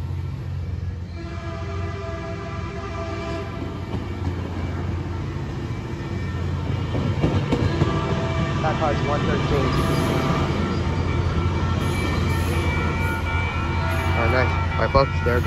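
Train brakes squeal with a high steady whine.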